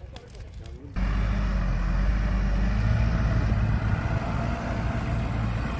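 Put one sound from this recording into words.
A fire engine's motor rumbles steadily close by.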